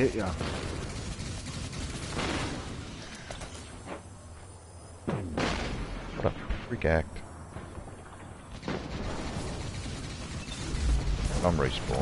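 Laser gunfire zaps in short bursts.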